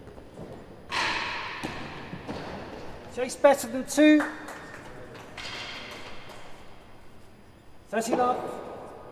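A ball is struck hard with a racket and thuds off walls in an echoing hall.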